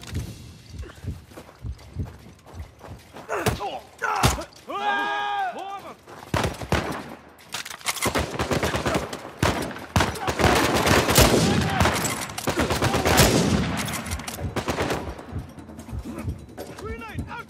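Gunshots crack in quick bursts, echoing off stone walls.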